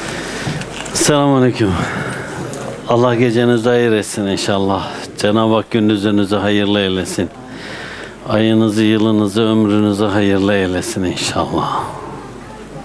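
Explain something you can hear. Men chant loudly together in a room.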